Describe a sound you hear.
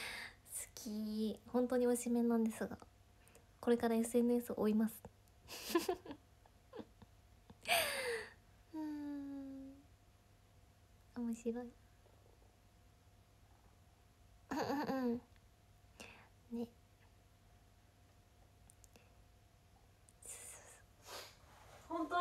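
A young woman speaks cheerfully and close to a microphone, in short bursts with pauses.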